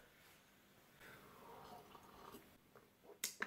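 A man slurps a drink from a mug.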